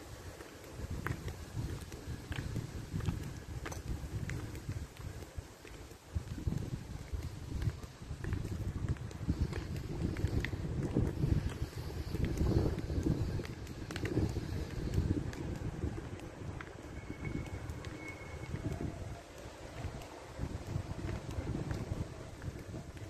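High heels click sharply on hard pavement.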